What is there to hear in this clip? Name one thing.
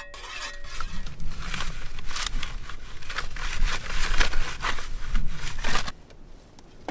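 A metal tool scrapes and chops into a tough plant.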